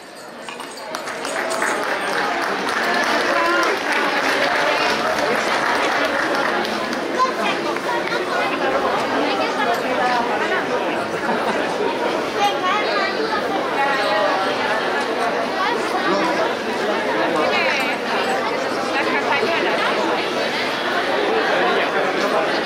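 A large crowd of men and women chatters outdoors.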